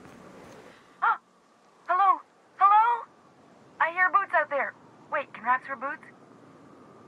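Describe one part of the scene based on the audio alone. A man calls out with animation through a crackly intercom speaker.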